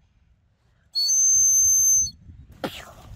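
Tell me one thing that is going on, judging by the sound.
A young child blows a toy whistle.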